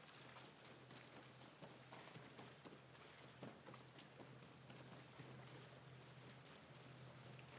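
Footsteps run quickly over wet ground.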